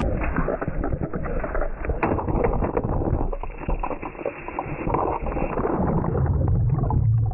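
Water splashes and churns loudly close by.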